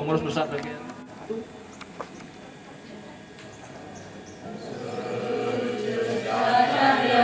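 A group of women sings together outdoors.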